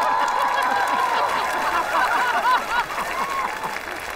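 A man laughs heartily.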